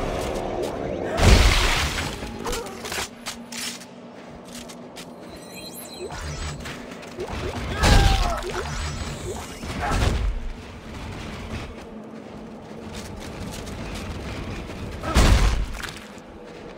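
Heavy boots thud and crunch on a hard floor.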